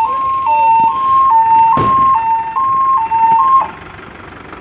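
A fire truck siren wails in a two-tone pattern nearby.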